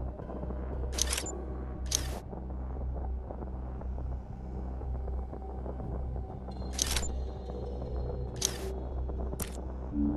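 Short menu click sounds come every so often as options are picked.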